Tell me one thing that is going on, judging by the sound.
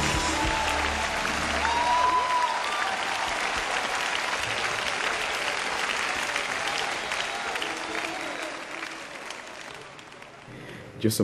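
A large crowd cheers and applauds in a big echoing hall.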